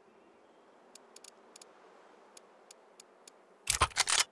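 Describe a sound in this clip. Soft menu clicks tick several times.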